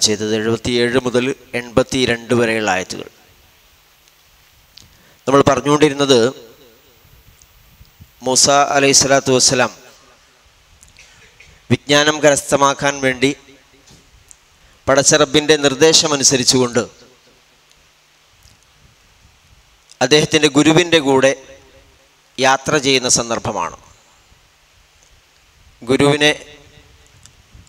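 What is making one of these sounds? A man speaks into a microphone in short, measured phrases with pauses between them.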